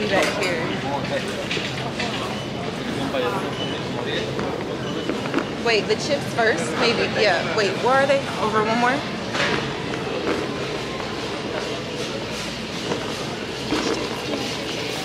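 A shopping cart rattles as it rolls along.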